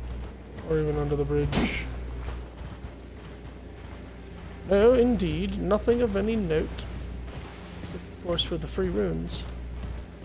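A man speaks loudly into a nearby microphone.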